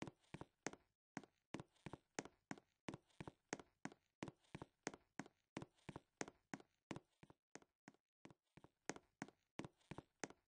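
Quick footsteps patter in a steady running rhythm.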